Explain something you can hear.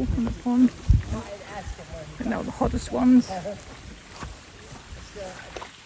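A reindeer splashes softly while wading through shallow water.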